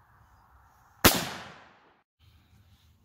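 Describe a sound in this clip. A rifle fires a single loud shot that echoes outdoors and fades.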